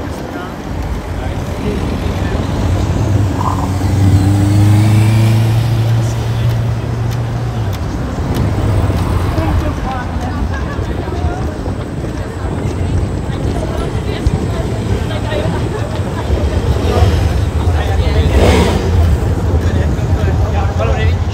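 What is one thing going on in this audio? Traffic rumbles past on a city street outdoors.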